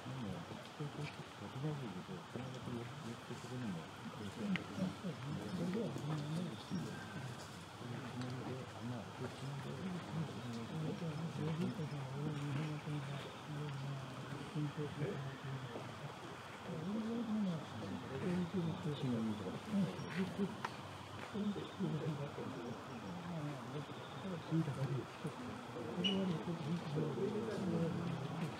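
Several men talk calmly nearby outdoors.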